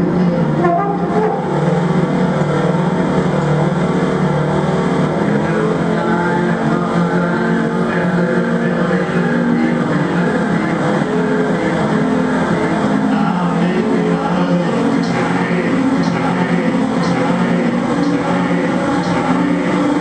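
A man plays an electronic keyboard with droning tones.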